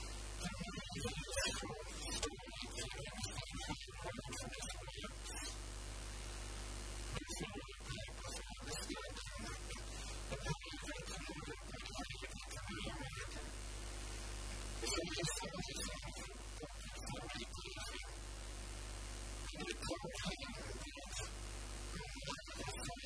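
A middle-aged man speaks calmly through a handheld microphone, with pauses.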